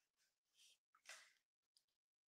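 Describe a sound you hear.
Trading cards slide against each other in a hand.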